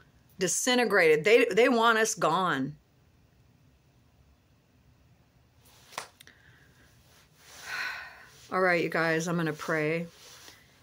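A middle-aged woman speaks calmly and close up, with pauses.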